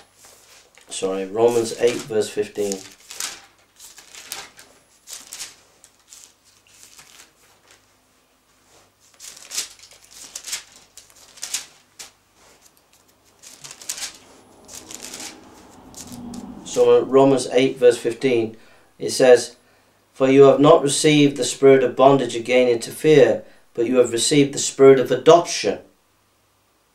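A man speaks calmly and close by, reading aloud.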